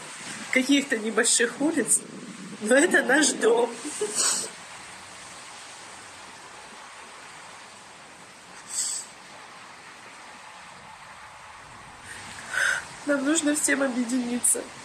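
A young woman speaks emotionally through a microphone, pausing between phrases.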